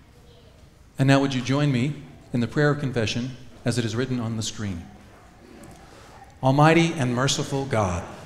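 A man speaks clearly through a microphone in an echoing hall.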